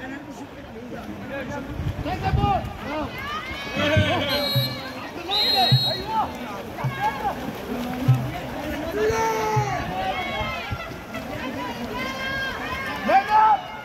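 Water splashes as swimmers thrash through a pool.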